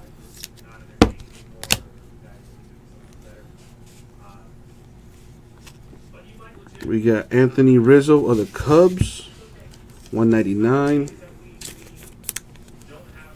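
Stiff cards flick and snap as hands sort through them.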